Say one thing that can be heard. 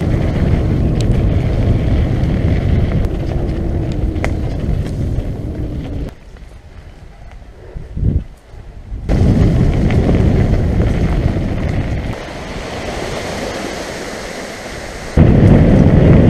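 Mountain bike tyres rumble over a dirt trail.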